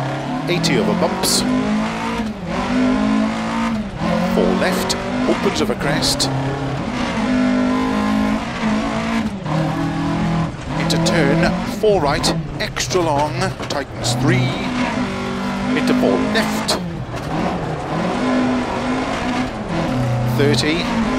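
A car engine revs up and down through gear changes.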